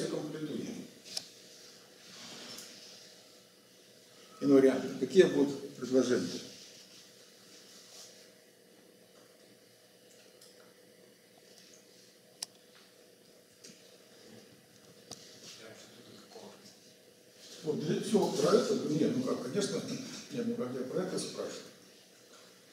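An elderly man lectures calmly in a room with some echo, in short bursts with pauses.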